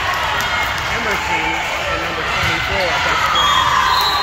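A volleyball is struck with a smack.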